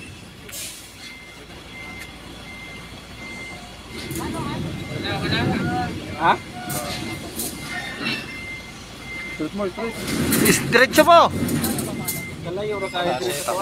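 A truck's reversing alarm beeps steadily.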